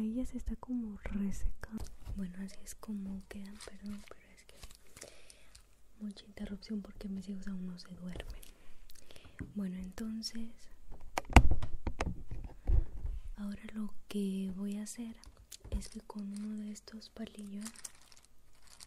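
A young woman talks softly and close to a microphone.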